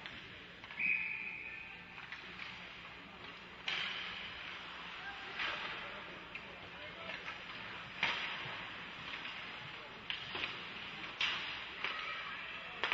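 Skates scrape and hiss on ice in a large echoing rink.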